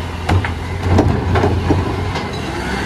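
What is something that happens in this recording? A plastic bin bangs and clatters against a truck's lifting arm.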